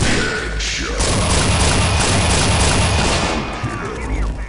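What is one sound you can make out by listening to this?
A plasma weapon fires with a crackling burst.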